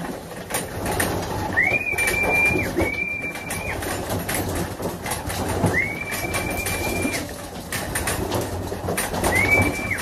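Pigeons flap their wings as they fly off.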